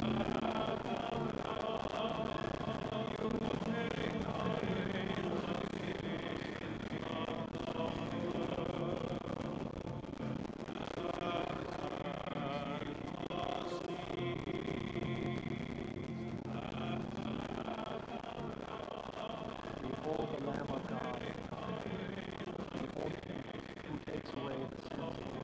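A man speaks steadily into a microphone in a large echoing room.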